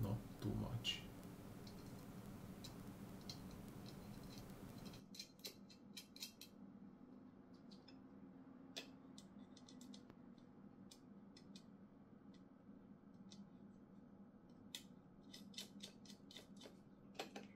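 A screwdriver clicks and ticks as a small screw is turned into wood.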